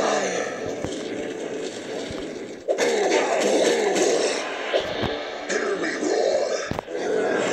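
Sword blows clang and thud in a fight.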